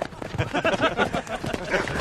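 Several men laugh heartily together.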